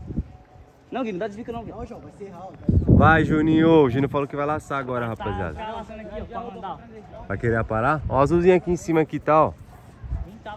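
A young man talks excitedly close by.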